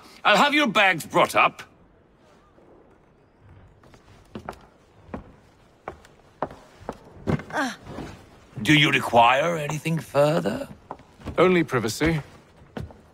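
A man speaks calmly and politely up close.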